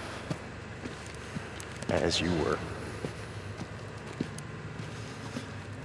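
Footsteps walk slowly on a hard floor.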